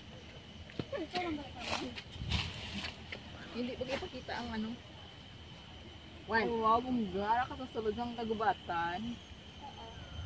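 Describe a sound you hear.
A woman talks calmly close by, outdoors.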